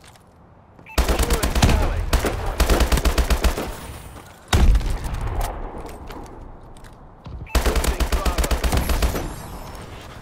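Rapid automatic gunfire rattles in quick bursts.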